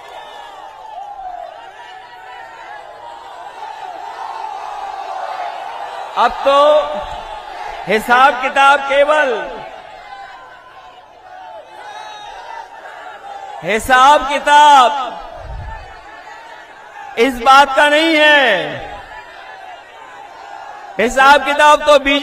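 A man speaks forcefully into a microphone over a loudspeaker, in loud bursts.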